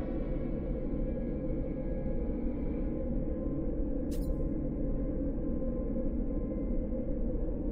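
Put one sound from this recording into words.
A teleporter portal hums with a low, steady swirling drone.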